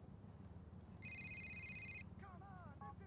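A mobile phone rings with a short electronic tone.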